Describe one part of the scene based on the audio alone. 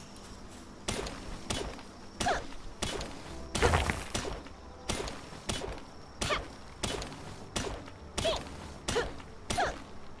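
A pickaxe strikes rock in quick, repeated blows.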